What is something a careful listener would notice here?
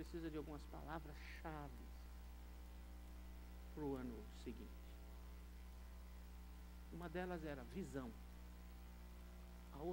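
An older man speaks calmly into a microphone, with pauses between phrases.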